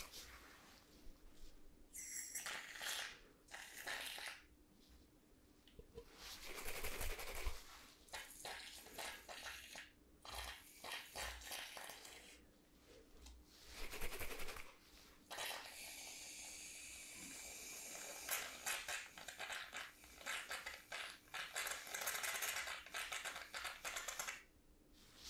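Foam sprays from a can in bursts with a sharp hiss, very close to a microphone.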